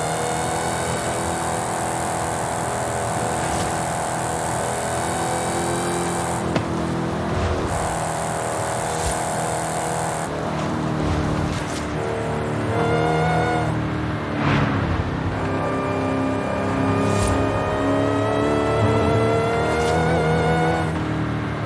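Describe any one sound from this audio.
A powerful car engine roars steadily at high speed, its pitch dipping and rising as it shifts gears.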